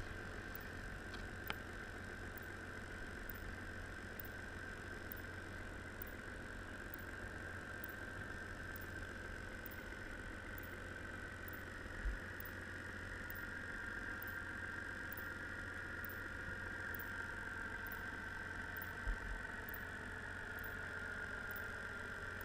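Water churns and hisses steadily underwater.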